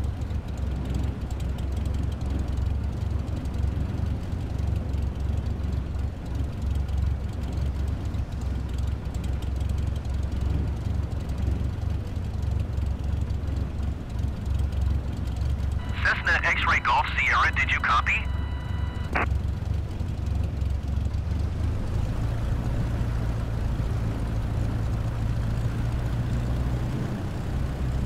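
A small propeller plane's engine drones steadily at low power.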